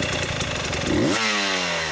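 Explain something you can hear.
A motorcycle engine revs up.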